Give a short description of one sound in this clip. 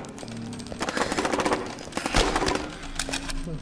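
A gun fires in a rapid burst.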